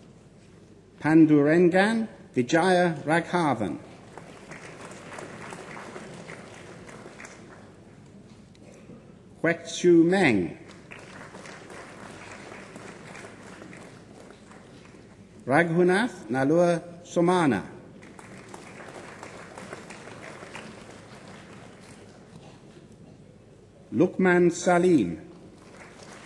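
A man reads out over a loudspeaker in a large hall.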